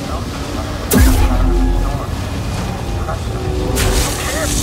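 A lightsaber ignites and hums.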